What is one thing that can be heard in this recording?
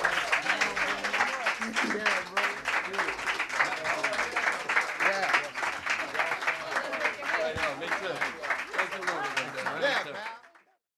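A crowd cheers and whoops.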